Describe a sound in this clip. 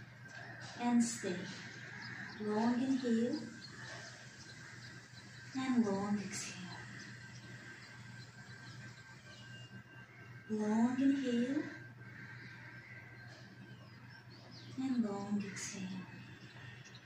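A woman speaks calmly in short phrases nearby.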